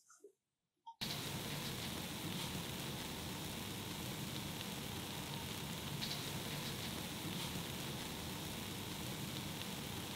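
A foaming mixture fizzes steadily.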